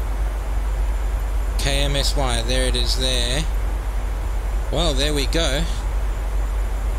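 A low engine drone hums steadily throughout.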